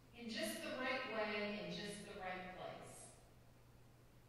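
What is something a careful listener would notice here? A middle-aged woman speaks calmly into a microphone in a large echoing room.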